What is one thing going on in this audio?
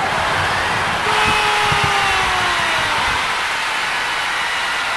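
A video game crowd cheers loudly after a goal.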